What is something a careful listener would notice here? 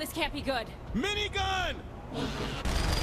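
A man shouts gruffly.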